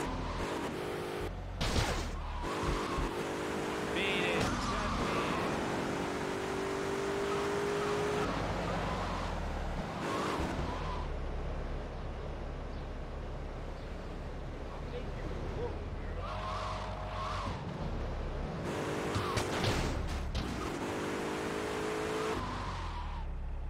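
A car engine roars and revs as it speeds along.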